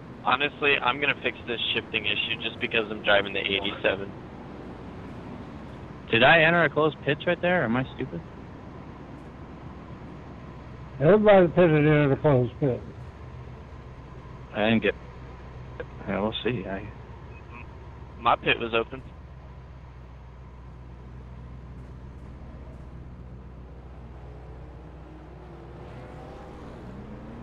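Race car engines idle with a low, steady rumble.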